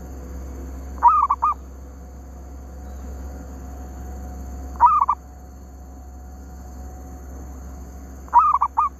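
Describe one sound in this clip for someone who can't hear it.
A caged bird gives short, bright chirping calls in bursts.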